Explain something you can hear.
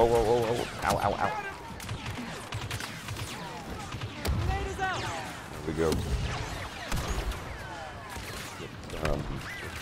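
Laser blasters fire in sharp, zapping bursts.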